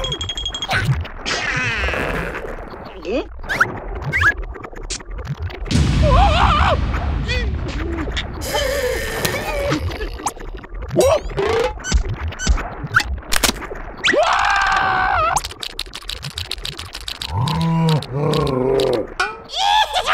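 A cartoon creature babbles and grunts in excited gibberish.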